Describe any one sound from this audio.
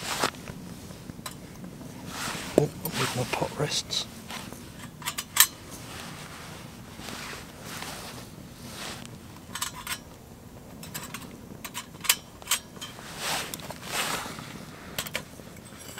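A metal pot clinks against a stove.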